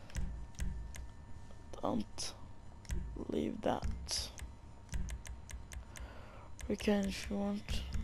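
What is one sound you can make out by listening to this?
Game menu sounds click and beep as options are selected.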